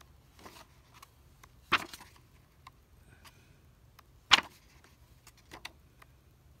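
Paper pages rustle and flip as a book is leafed through close by.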